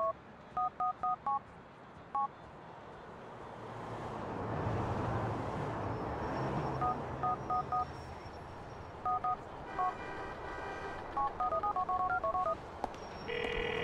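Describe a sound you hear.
Short electronic phone beeps sound in quick bursts.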